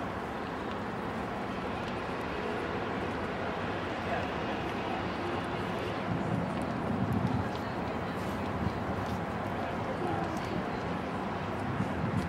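Wind rumbles and hisses outdoors.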